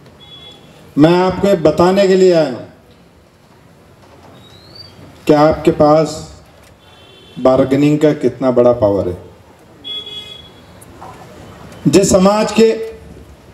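A middle-aged man sings loudly through a microphone and loudspeaker, in short phrases with pauses between them.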